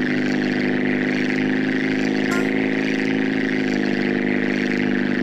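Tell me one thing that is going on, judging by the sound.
A propeller plane engine drones steadily throughout.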